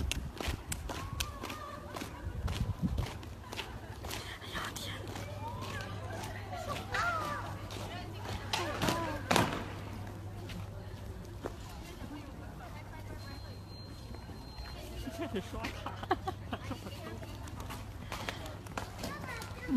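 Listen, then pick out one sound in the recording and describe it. Boots march in step on hard ground outdoors.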